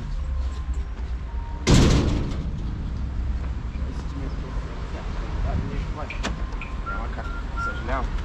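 Footsteps walk on pavement outdoors.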